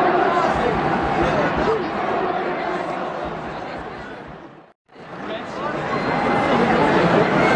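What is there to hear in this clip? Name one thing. A large crowd cheers and chants loudly in an open stadium.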